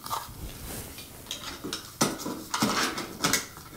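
Stiff wires rustle and click against a ceiling fitting close by.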